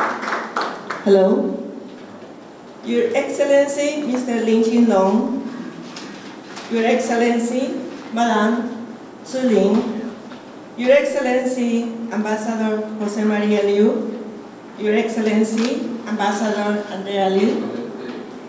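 An elderly woman speaks calmly into a microphone, heard through a loudspeaker.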